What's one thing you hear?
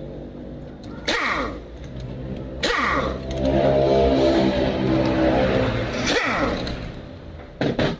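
A pneumatic power tool whirs and buzzes loudly.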